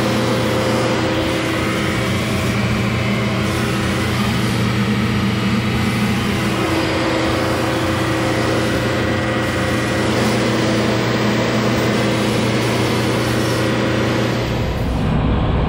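A diesel engine of a tracked machine runs with a steady hum.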